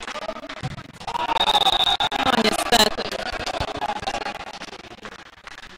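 Men shout and cheer loudly in an echoing hall.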